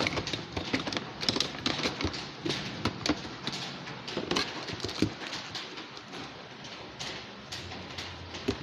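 A young person speaks close to the microphone.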